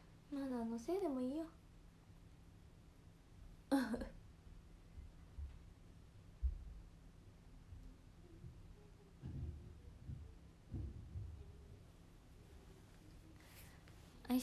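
A young woman speaks close to a microphone in a high, animated voice.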